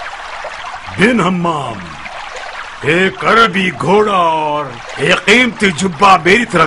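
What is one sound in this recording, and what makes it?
An elderly man speaks with animation, nearby.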